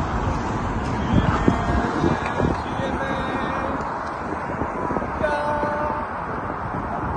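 An elderly woman shouts angrily close by.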